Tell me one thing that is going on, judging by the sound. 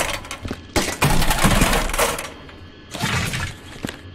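A heavy box thumps down onto a hard floor.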